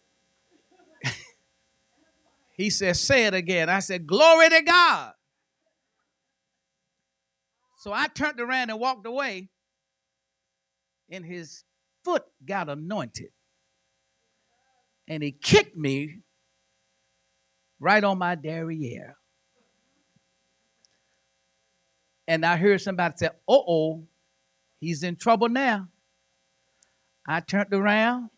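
An older man preaches with fervour into a microphone, in bursts separated by pauses.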